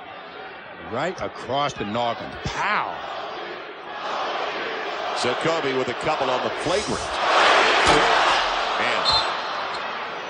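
A large crowd murmurs and then cheers loudly in a big echoing arena.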